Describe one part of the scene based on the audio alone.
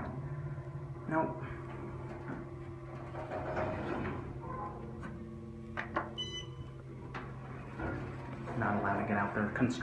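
Elevator doors slide open and closed.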